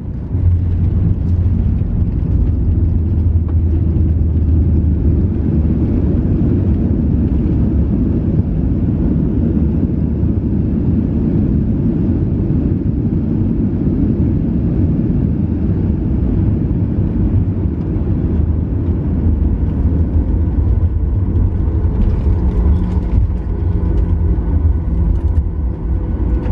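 A jet airliner's engines roar loudly as the plane rolls fast down a runway.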